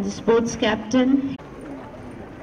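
A woman speaks loudly nearby, outdoors.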